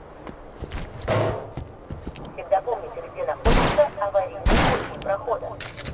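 Gunshots crack in short loud bursts.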